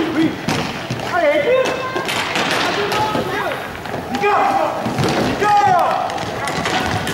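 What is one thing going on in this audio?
Hockey sticks clack against a ball and each other, echoing in a large hall.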